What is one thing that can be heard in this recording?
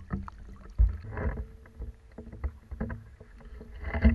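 Small waves lap and splash against the shore nearby.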